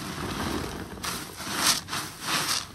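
Soap suds crackle and fizz as cloth is wrung out.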